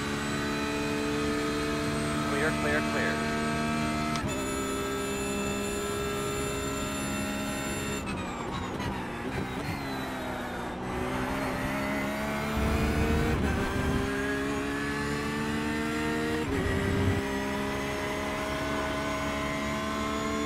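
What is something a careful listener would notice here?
A race car engine roars loudly, its pitch rising through the gears and dropping sharply as it brakes and shifts down.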